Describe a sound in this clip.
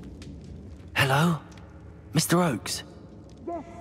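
A young man calls out loudly.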